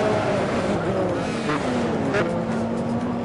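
A racing car whooshes past close by, its engine pitch falling sharply.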